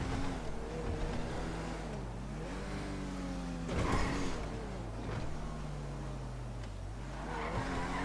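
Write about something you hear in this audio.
A car engine hums and revs, rising and falling in pitch as it drives.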